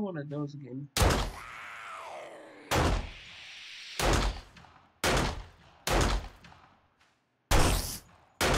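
A shotgun fires several loud, booming shots.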